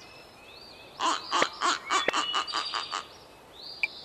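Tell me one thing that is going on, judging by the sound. A hen clucks.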